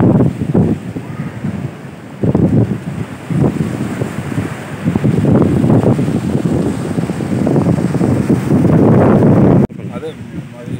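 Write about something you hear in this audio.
Waves crash and roar loudly in strong wind.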